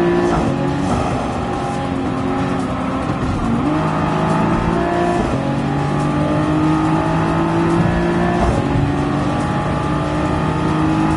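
A race car engine roars loudly, revving up and dropping in pitch with each gear change.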